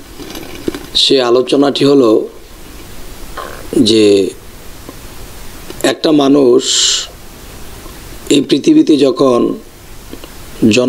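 A man speaks in short, spaced phrases close to a microphone, with brief pauses between them.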